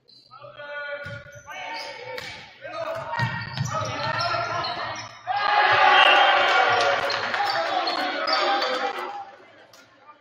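A crowd of spectators cheers loudly in an echoing hall.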